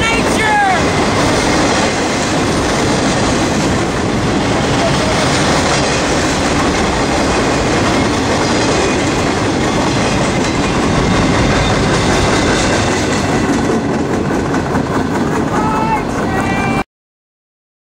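A freight train rumbles and clatters loudly past close by, then fades away.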